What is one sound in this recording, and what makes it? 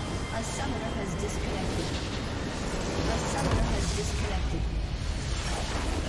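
A tower crumbles with a heavy crash.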